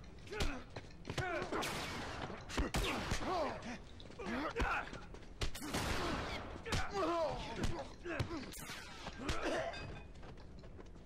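Heavy blows land in a fight.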